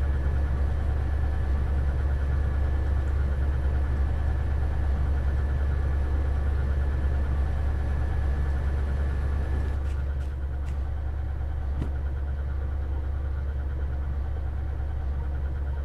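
A diesel locomotive engine rumbles steadily at idle.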